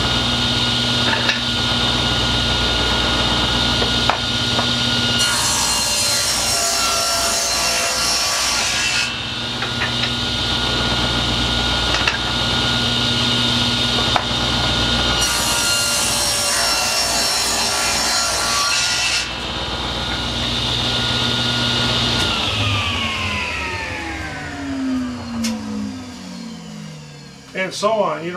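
A table saw runs with a steady whine and then winds down.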